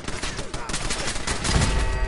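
An explosion bursts with a loud bang.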